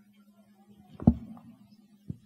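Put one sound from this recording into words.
A microphone thumps as it is handled.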